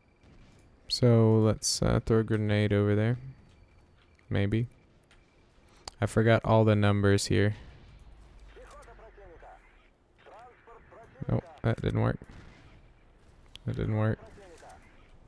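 A heavy mounted gun fires in loud bursts.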